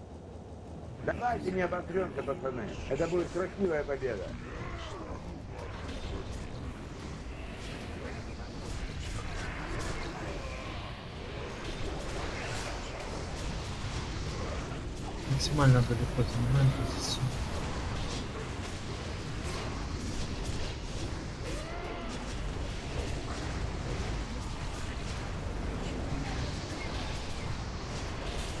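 Spell effects and weapon hits clash and crackle in a fantasy battle.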